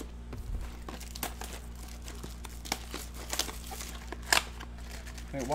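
Card wrappers crinkle and rustle in hands.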